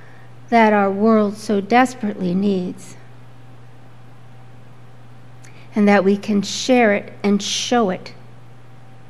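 A woman speaks calmly into a microphone, reading out in two short phrases.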